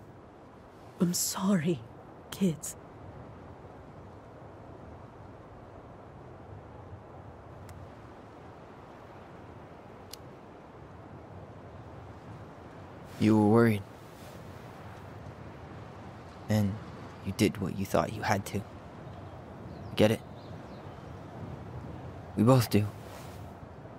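A middle-aged woman speaks calmly, close by.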